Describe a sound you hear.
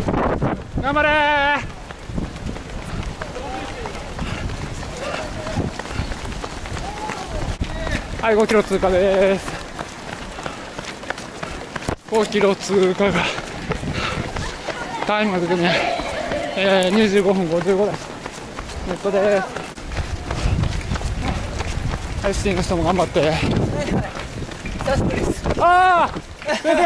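Many runners' footsteps patter on asphalt.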